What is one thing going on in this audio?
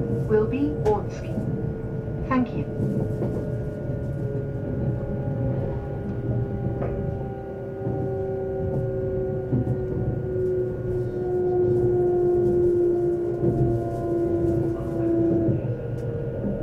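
A train's motor hums with a slowly falling whine.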